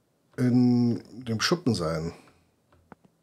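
A middle-aged man speaks briefly and with animation, close to a microphone.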